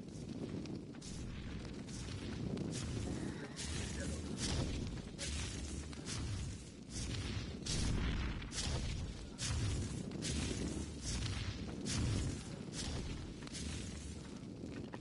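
A torch swings and thuds repeatedly against plants and rock.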